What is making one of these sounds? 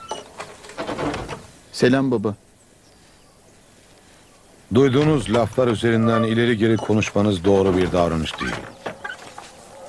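An elderly man speaks loudly and forcefully, close by.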